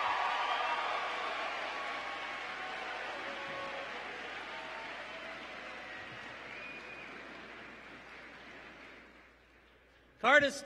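A large crowd applauds and cheers in a big echoing hall, the applause slowly fading.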